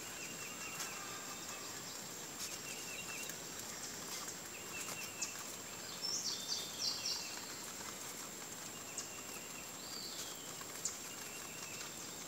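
A rabbit munches on fresh leaves.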